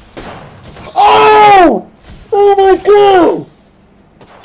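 A young man screams loudly and excitedly into a microphone.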